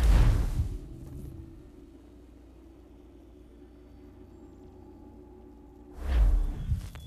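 Wind blows steadily over snow.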